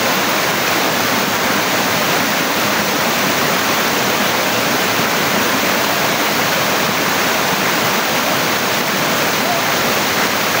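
A waterfall roars steadily, splashing over rocks.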